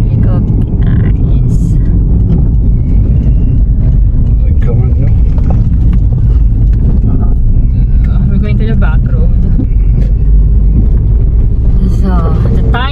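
A car engine hums steadily with low road rumble.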